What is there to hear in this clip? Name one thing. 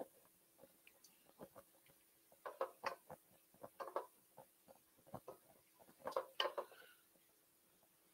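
A metal spoon scrapes and clinks against a pan.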